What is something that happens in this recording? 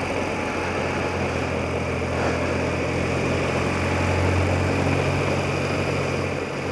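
A motorcycle engine hums while cruising.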